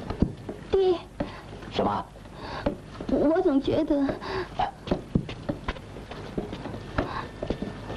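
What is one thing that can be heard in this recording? A woman speaks with alarm.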